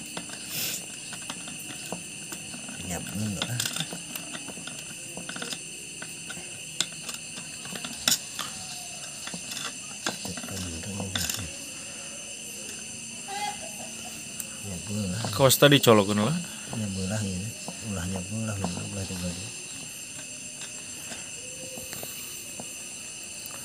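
A metal rod taps and scrapes against engine parts.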